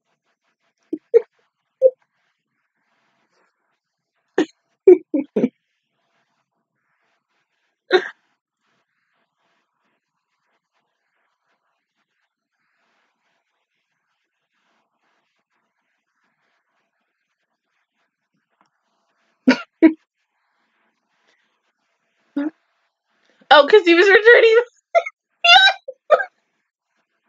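A young woman talks in short bursts close to a microphone.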